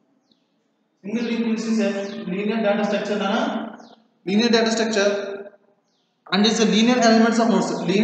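A man speaks calmly and clearly, close by.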